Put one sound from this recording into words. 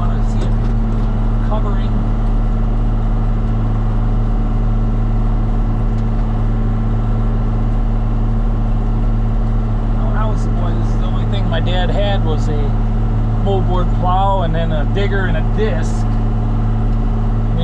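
A harrow scrapes and rattles through the soil.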